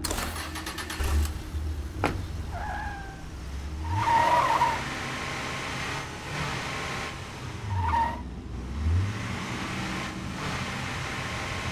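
A car engine rumbles and revs as the car drives off.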